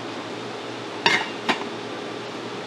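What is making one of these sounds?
A metal lid clanks onto a steamer pot.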